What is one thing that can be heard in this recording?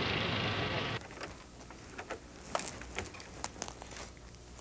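Pens tap and scratch on paper in a quiet room.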